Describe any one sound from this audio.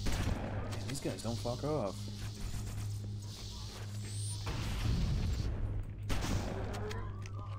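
Plasma bolts fire in rapid bursts.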